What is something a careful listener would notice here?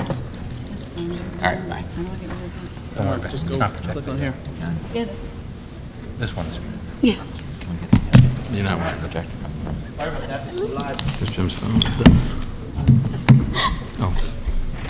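A man speaks calmly through a microphone in a large echoing hall.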